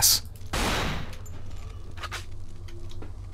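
A pistol fires sharp single shots.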